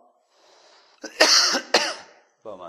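A man coughs into his hand.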